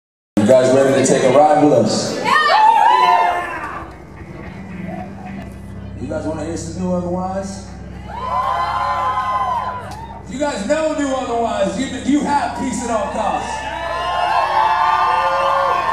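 A man sings loudly through a microphone, heard live in a hall.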